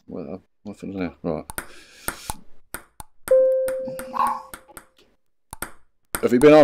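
A ping pong ball clicks against a paddle and the table.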